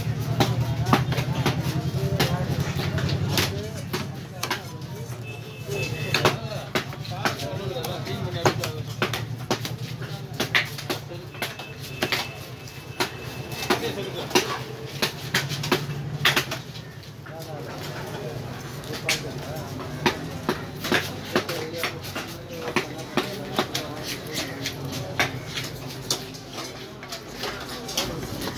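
A heavy knife chops through fish on a wooden block with sharp knocks.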